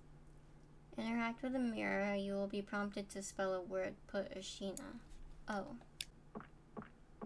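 A young woman speaks animatedly into a close microphone.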